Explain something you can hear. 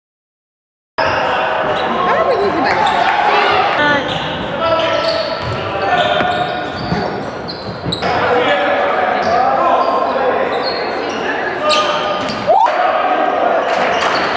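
A crowd murmurs and calls out in an echoing gym.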